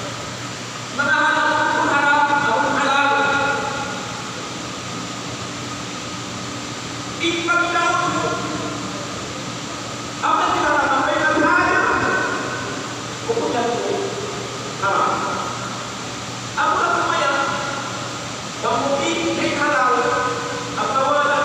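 An elderly man speaks calmly into a microphone, heard through a loudspeaker in an echoing room.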